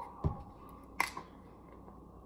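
A bottle cap clicks as it is twisted open.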